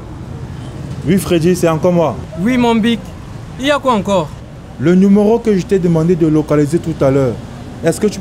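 A man speaks into a phone with urgency, close by.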